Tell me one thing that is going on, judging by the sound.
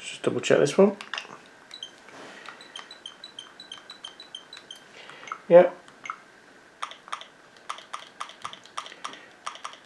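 Small plastic buttons click on a handheld game console.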